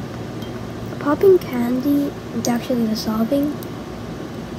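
A young girl speaks briefly and softly close by.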